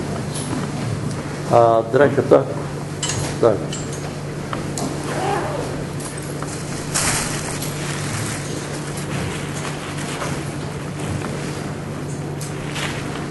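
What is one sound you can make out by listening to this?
A crowd of adults murmurs and talks quietly nearby.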